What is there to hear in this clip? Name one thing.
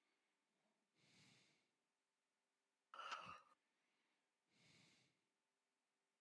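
A man breathes heavily into a headset microphone.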